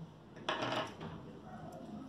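Small scissors snip a thread.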